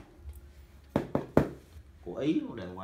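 A cardboard box thumps as a hand handles it.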